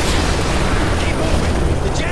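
Helicopter rotors thud overhead.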